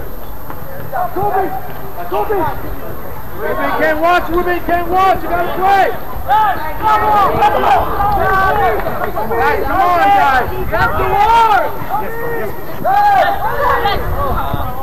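Young players shout and call to one another across an open field.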